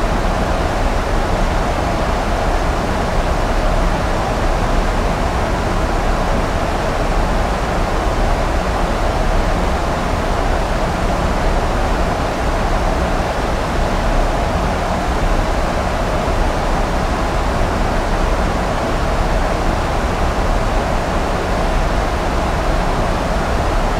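Jet engines roar steadily, heard from inside the cockpit.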